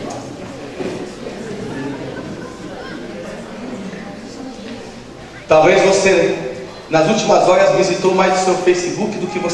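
A man speaks with animation through a microphone and loudspeaker in an echoing room.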